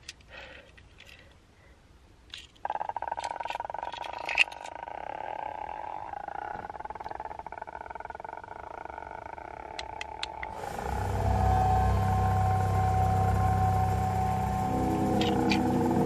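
A young man whispers excitedly close to the microphone.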